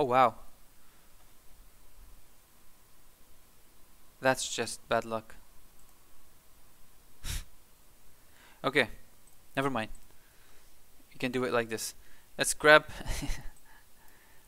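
A young man talks calmly and closely into a microphone, in short bursts.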